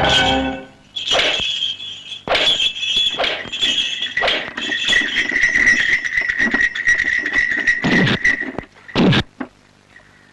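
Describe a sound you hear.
Punches land with sharp smacks in a fight.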